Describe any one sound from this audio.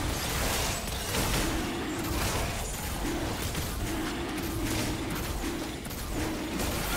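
Game spell effects crackle and burst during a fast fight.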